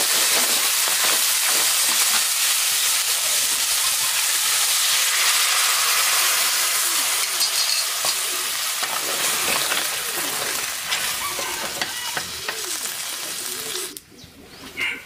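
Food sizzles loudly in a hot pan.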